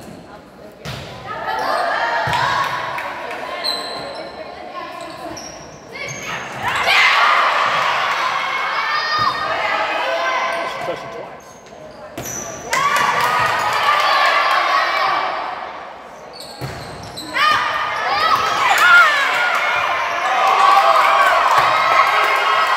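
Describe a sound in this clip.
Players and spectators shout and cheer loudly in an echoing hall.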